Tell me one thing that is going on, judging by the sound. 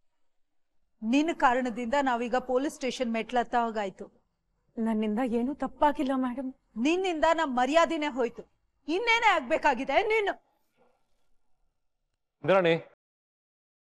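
A woman speaks sharply and with agitation, close by.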